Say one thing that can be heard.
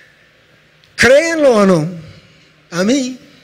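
A man speaks with emphasis into a microphone, loud and close.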